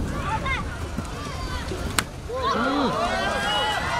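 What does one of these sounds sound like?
A football is kicked on artificial grass.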